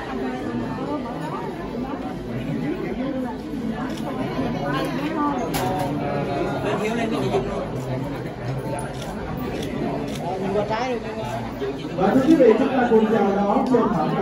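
A young woman talks to a woman nearby.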